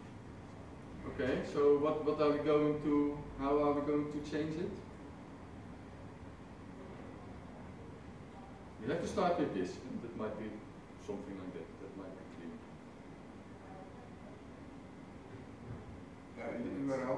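A man speaks calmly through a microphone in a large room, with pauses.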